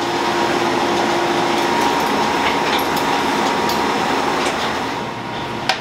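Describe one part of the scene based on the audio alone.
A wire basket clatters against a metal rack.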